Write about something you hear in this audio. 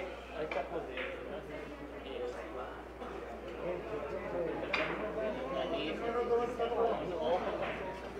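Billiard balls click against each other and the cushions.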